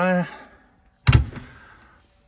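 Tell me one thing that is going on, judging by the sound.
A wooden cupboard door knocks shut.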